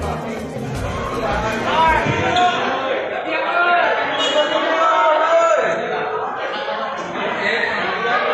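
A crowd of people shouts and chants loudly nearby.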